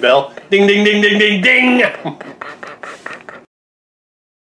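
A middle-aged man sings out loudly, close by.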